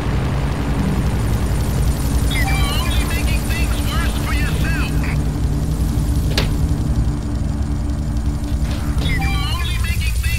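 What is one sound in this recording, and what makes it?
A motorboat engine hums as the boat cruises over water.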